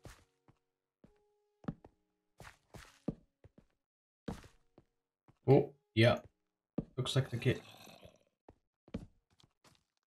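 Footsteps crunch on stone.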